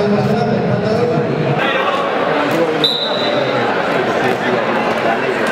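A crowd chatters and murmurs in a large echoing hall.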